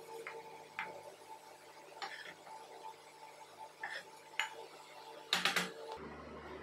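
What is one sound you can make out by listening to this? A spatula scrapes and taps against a metal pot.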